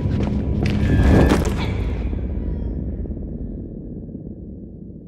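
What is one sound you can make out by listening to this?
A heavy crash booms and slowly rumbles away.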